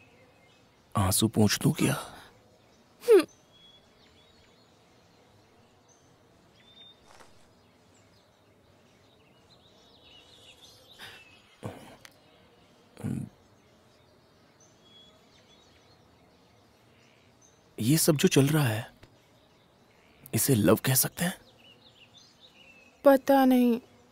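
A young man speaks softly, close by.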